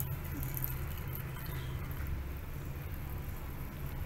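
Hot water pours into a mug.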